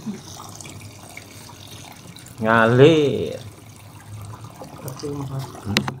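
Water trickles out onto gravel.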